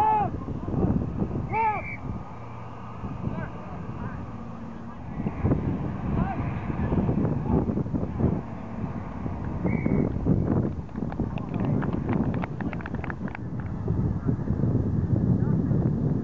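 Young men shout loudly outdoors across an open field.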